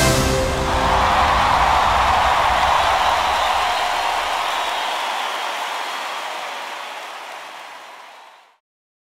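A large crowd cheers and applauds loudly in a big hall, slowly fading.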